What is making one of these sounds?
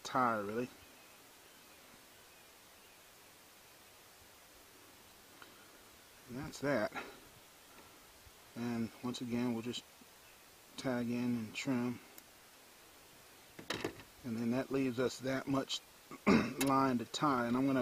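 A man speaks calmly and close by, in short phrases with pauses.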